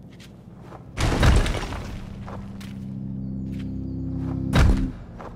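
Stone chunks crumble and crash with a deep rumble.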